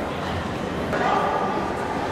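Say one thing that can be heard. Many adults chatter in an echoing hall.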